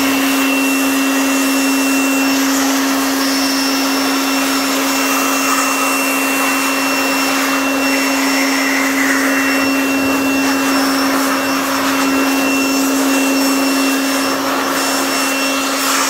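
An electric air blower whirs steadily at high speed.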